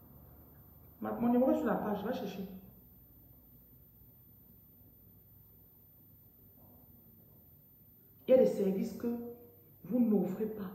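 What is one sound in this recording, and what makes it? A woman speaks with animation close to a microphone, with pauses between phrases.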